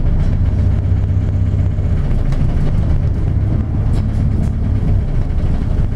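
A small truck drives past close by.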